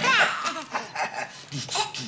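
A small child laughs.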